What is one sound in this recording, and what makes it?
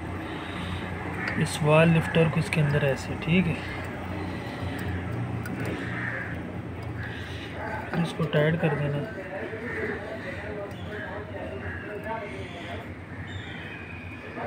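Metal tools clink against an engine's valve parts.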